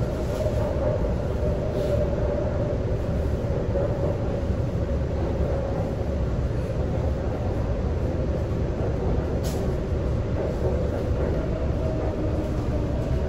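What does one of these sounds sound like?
A train rumbles and roars steadily along the track.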